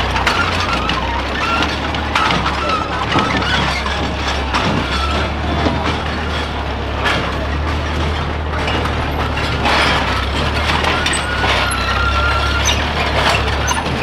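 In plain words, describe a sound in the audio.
A tractor engine rumbles steadily at low speed.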